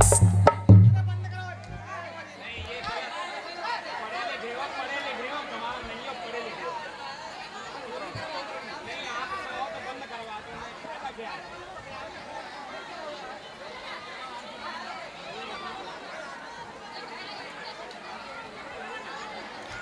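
A large crowd of girls and women cheers and chatters outdoors.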